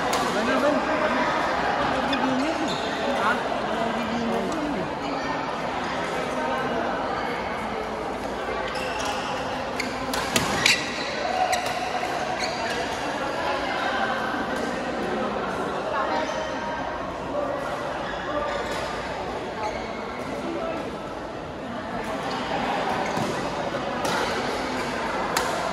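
A crowd of players chatters and calls out in the background.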